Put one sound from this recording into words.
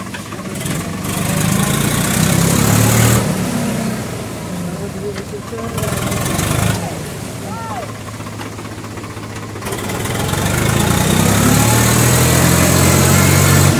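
A tractor engine chugs steadily close by.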